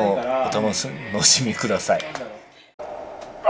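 A man talks casually and chuckles close by.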